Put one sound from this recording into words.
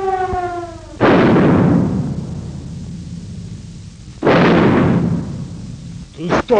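A building blows up with a loud, booming roar.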